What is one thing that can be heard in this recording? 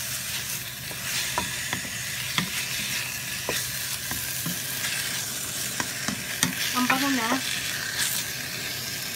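A wooden spoon scrapes and knocks against a metal pan.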